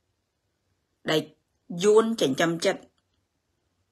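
A woman speaks close to a microphone, in short bursts.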